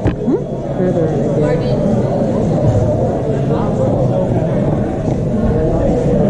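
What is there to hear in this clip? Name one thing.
Several men and women chatter in a large echoing hall.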